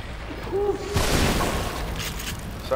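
A loud gunshot rings out and echoes.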